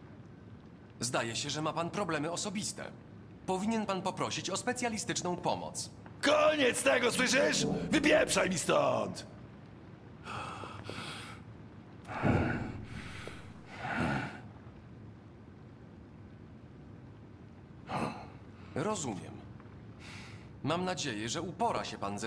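A young man speaks calmly and evenly.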